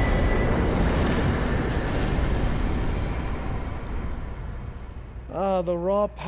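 A roaring, crackling blast of icy magic bursts and slowly dies away.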